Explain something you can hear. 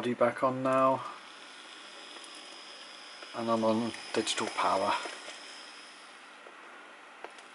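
A model locomotive's small electric motor whirs softly as it runs along the track.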